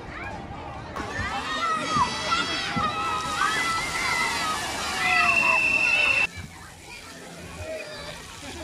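Children shout and squeal at a distance outdoors.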